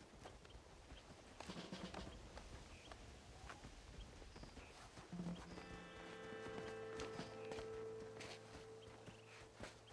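Hands scrape on rock during a climb.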